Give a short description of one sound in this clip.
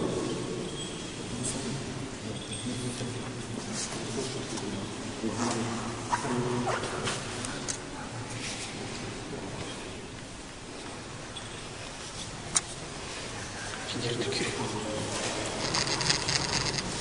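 A man murmurs prayers quietly.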